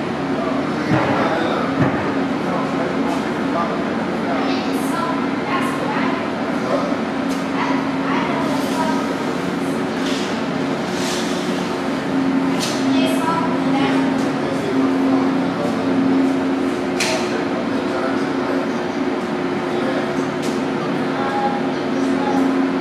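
Computers hum steadily in a room.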